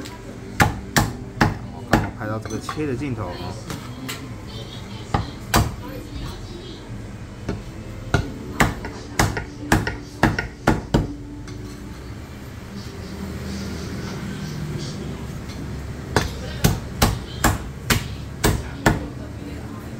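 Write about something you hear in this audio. A cleaver chops sharply through meat and bone onto a wooden block.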